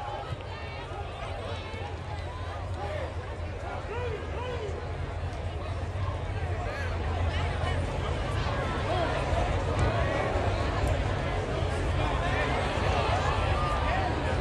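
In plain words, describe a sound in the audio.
A marching band plays brass and drums outdoors.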